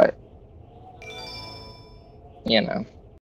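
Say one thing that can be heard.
A short video game victory jingle chimes.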